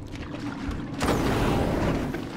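A flamethrower roars loudly with a rushing blast of fire.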